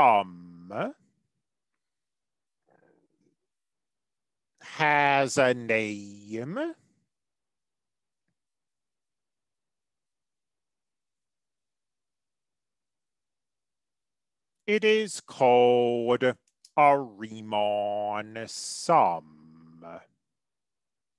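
A young man speaks calmly into a microphone, explaining.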